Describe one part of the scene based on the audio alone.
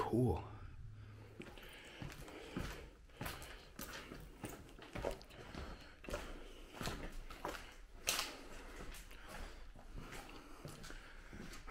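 Footsteps crunch on scattered debris in a hollow, echoing building.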